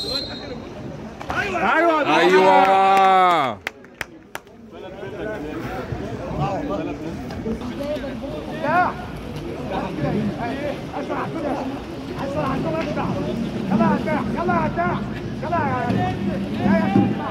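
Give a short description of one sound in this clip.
Water splashes.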